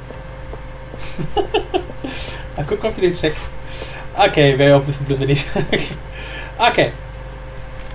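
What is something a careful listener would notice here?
A young man talks and laughs with animation close to a microphone.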